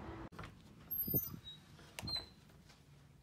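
A door handle clicks as a door opens.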